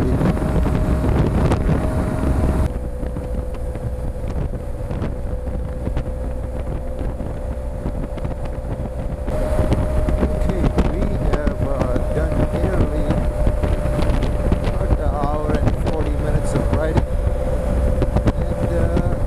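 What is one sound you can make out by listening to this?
Wind roars past a moving rider.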